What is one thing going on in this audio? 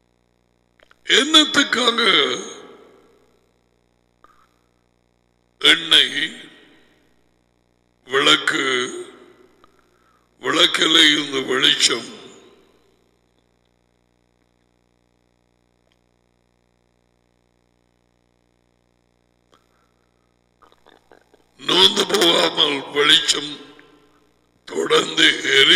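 A man speaks emphatically into a close microphone, in bursts with long pauses.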